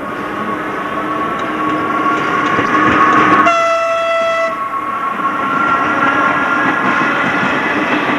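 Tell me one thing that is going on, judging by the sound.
An electric locomotive rumbles past on the rails, with a steady whine.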